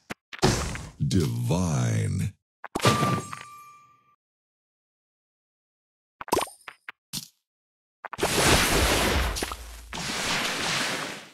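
A mobile puzzle game plays sound effects of candies bursting.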